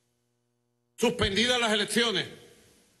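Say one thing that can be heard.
A man speaks firmly into a microphone.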